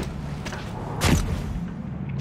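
A pistol fires a single loud shot.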